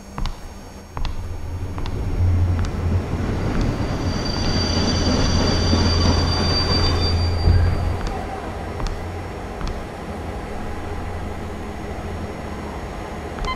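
A subway train rumbles past with a deep, steady roar.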